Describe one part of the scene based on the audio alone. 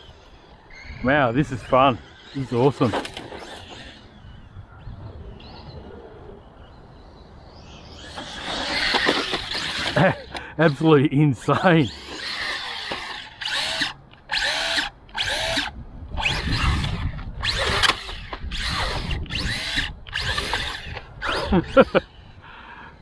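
A small electric motor of a toy car whines and revs up and down in short bursts.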